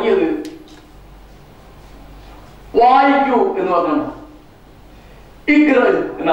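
An elderly man speaks with animation into a microphone, in short bursts with pauses, heard through a loudspeaker.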